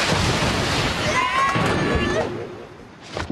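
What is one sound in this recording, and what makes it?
Bodies tumble and thud noisily onto the floor.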